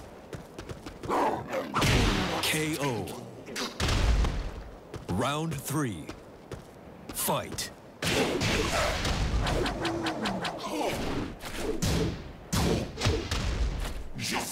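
Fighters grunt and shout as they strike.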